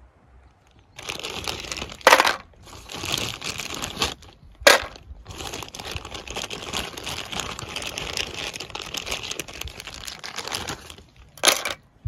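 Ice cubes crackle and pop in a metal cup.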